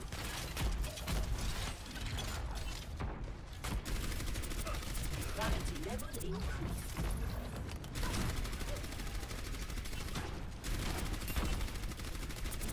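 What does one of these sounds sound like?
A futuristic gun fires rapid bursts of shots.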